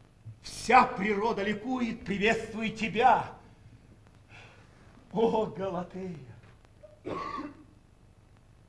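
A man declaims loudly on a stage.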